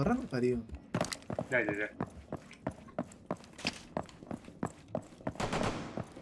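Footsteps thud quickly.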